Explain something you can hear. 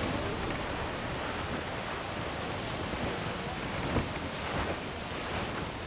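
Rain pours down steadily.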